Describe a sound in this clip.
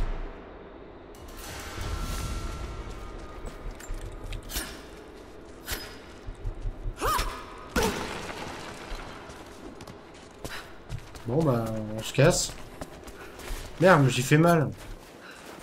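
Footsteps crunch on gravel and rock.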